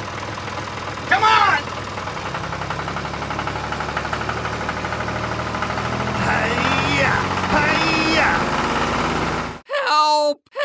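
A small toy motor whirs steadily.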